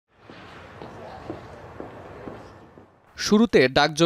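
Footsteps tap on a hard floor as several people walk.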